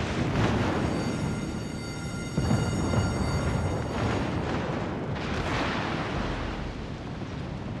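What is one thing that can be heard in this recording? Heavy naval guns boom in loud bursts.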